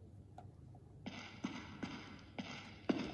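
Game sounds play from a tablet's speaker.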